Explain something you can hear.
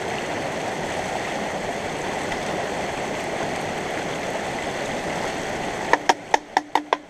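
Water pours and splashes steadily into a pan of water.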